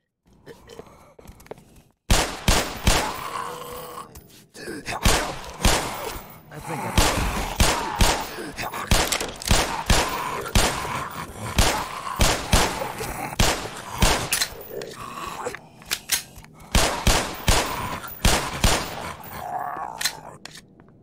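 Creatures snarl and groan close by.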